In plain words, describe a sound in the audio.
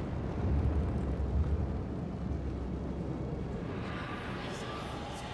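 A magic portal hums with a low, steady rumble.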